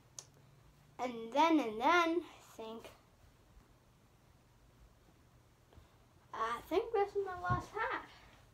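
A young girl talks and sings playfully close by.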